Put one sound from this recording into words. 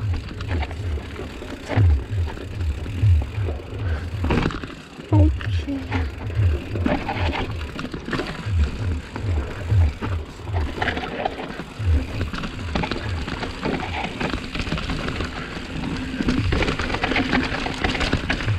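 Bicycle tyres rattle and bump over rough rocks.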